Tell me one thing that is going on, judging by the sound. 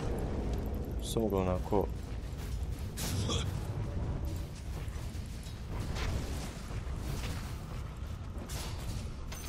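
Game fire blasts whoosh and explode.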